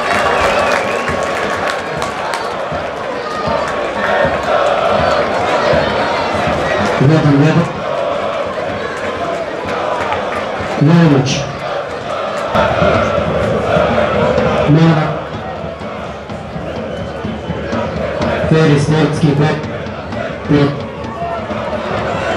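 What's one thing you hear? A large football crowd roars outdoors.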